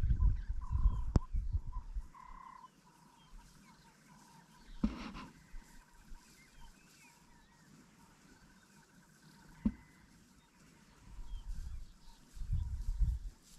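Wind blows in gusts outdoors.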